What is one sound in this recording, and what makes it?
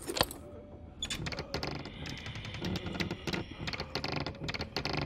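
A wooden door creaks slowly open.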